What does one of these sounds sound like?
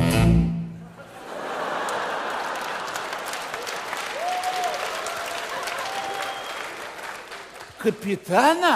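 A large audience laughs and applauds in an echoing hall.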